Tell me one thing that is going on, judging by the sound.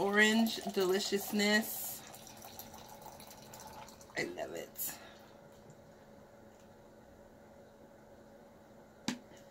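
A fizzy drink pours and splashes into a glass jar.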